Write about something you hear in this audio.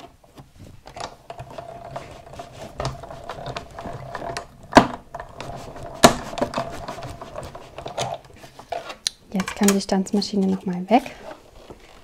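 A hand-cranked die-cutting machine rolls and clicks as it is cranked.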